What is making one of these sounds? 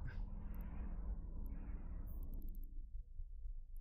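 A deep explosion rumbles and slowly fades.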